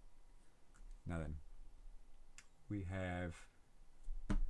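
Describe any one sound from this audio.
A man speaks in short phrases close to a microphone.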